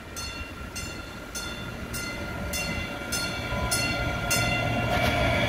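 A train bell rings rapidly as the train approaches.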